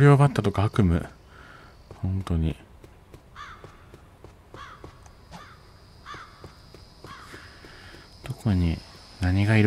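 A child's quick footsteps patter on a dirt path.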